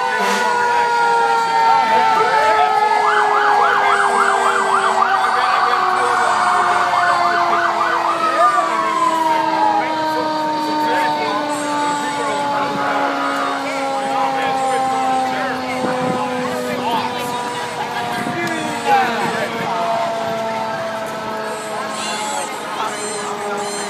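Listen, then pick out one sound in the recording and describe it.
A crowd of onlookers chatters outdoors.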